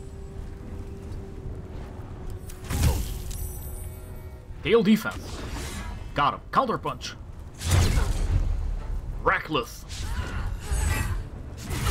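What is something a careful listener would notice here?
A blade strikes with heavy thuds.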